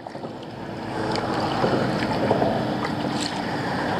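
A fishing reel clicks as the line is wound in.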